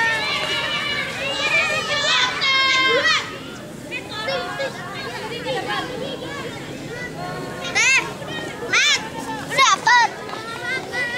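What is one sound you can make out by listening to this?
Young girls chatter and call out nearby outdoors.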